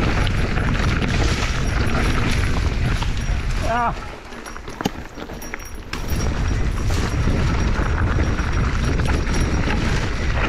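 Bicycle tyres roll and crunch over a rough dirt trail.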